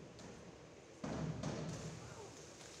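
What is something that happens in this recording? A diver splashes into the water.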